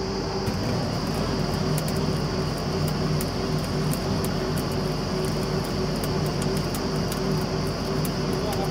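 A drill rig clanks and rattles as it bores.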